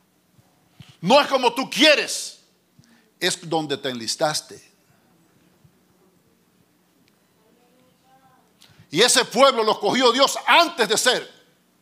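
A middle-aged man preaches with animation into a microphone, in bursts with pauses.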